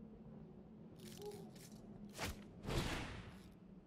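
A game's spell effect bursts with a sharp whoosh and crackle.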